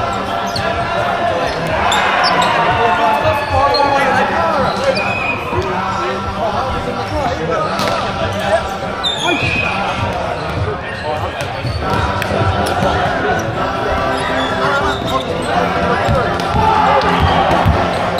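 A crowd of young people chatters and cheers in a large echoing hall.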